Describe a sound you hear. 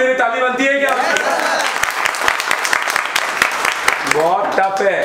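A group of young men clap their hands.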